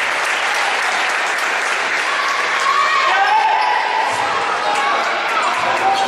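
A crowd of young women chatter and cheer loudly in an echoing hall.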